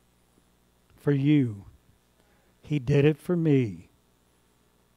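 An elderly man speaks slowly through a microphone.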